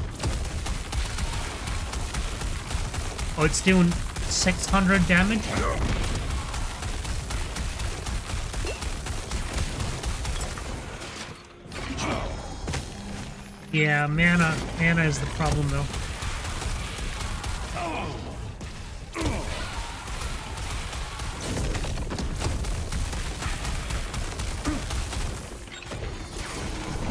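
Magic blasts crackle and whoosh in quick, constant bursts.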